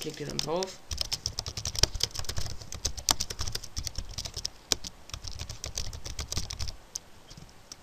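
Keys on a keyboard clatter in quick bursts of typing.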